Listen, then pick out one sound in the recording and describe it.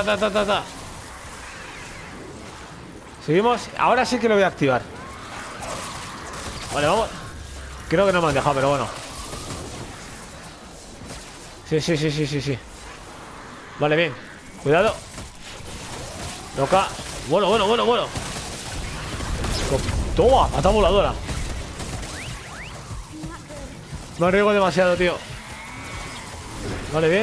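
Magic blasts burst with a crackle.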